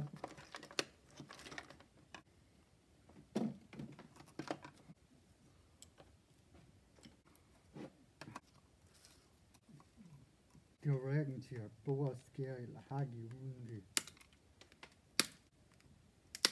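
Small tools and objects clatter and knock as they are handled.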